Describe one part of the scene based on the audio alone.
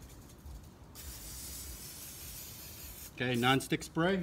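Cooking oil sprays from a can with a steady hiss.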